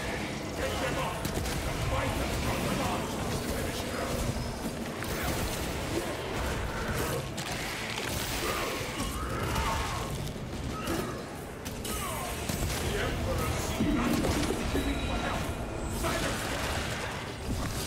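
Monsters shriek and snarl.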